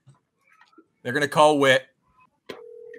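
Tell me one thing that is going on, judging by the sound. A man answers briefly over an online call.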